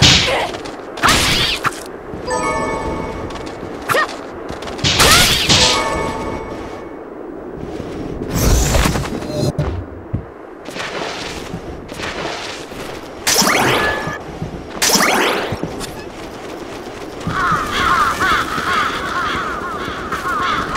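Magical whooshes rush past in sudden bursts.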